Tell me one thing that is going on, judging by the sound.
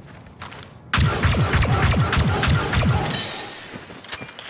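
A spaceship roars loudly past overhead.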